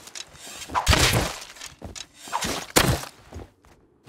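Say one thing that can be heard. A tool chops into a bush.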